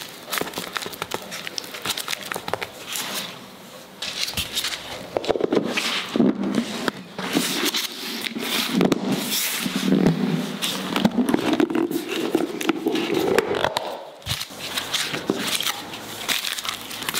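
Hands squish and press soft dough.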